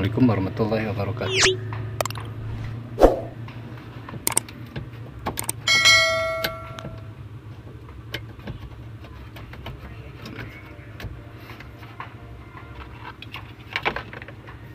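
Plastic parts click and rattle.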